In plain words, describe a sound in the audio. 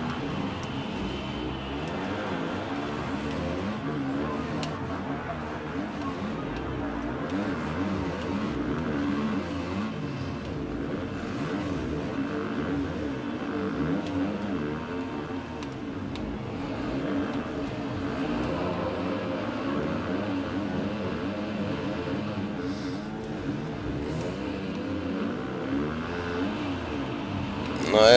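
A motorcycle engine revs and whines steadily at high speed.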